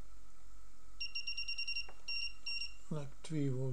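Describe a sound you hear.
An electronic instrument beeps quickly and repeatedly as its buttons are pressed.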